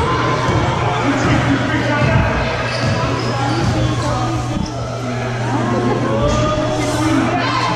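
A crowd of children and adults chatters throughout a large echoing gym.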